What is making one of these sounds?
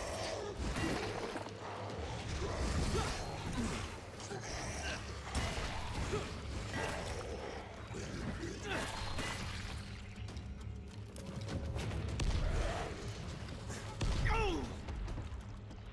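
A creature growls and snarls nearby.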